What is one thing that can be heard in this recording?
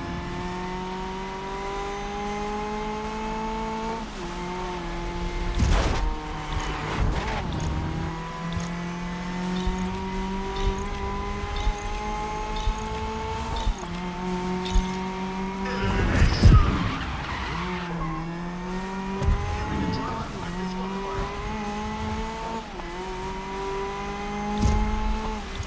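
A race car engine roars steadily, rising in pitch and dropping with each gear change.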